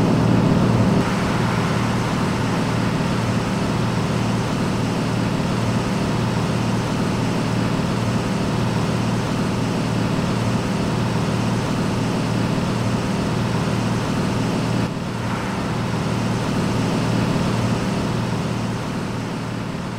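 A truck engine rumbles steadily from outside as the truck drives along.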